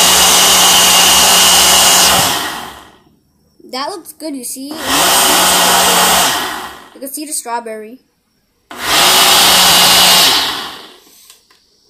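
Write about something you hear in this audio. A blender whirs loudly in short bursts.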